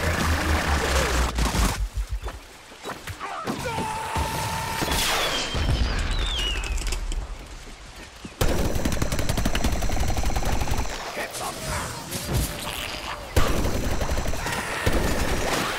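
Fiery explosions boom.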